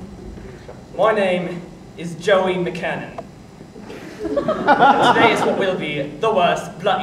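A second young man speaks loudly and with feeling.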